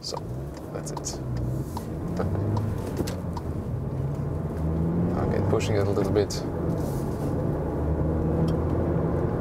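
A car engine hums and rises and falls in pitch as the car drives.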